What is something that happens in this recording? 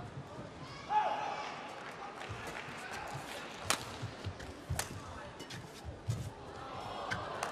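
Rackets strike a shuttlecock in a quick rally, with sharp pops.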